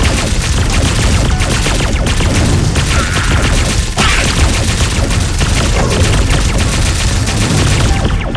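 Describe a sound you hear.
Rapid game shots fire and zap without pause.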